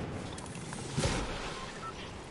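A glider snaps open with a sudden whoosh.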